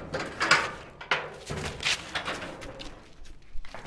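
A metal gate rattles as it opens.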